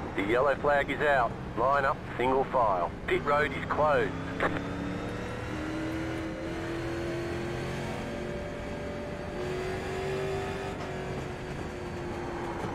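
A racing car engine drones steadily, its pitch slowly rising and falling.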